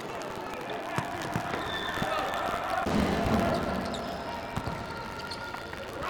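A ball is kicked with thuds.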